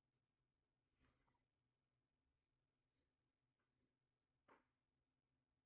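Fabric rustles softly as hands handle a cloth.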